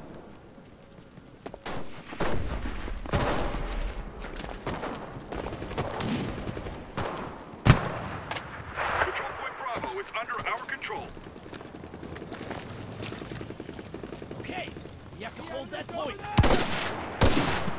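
Gunshots crack and echo in the distance.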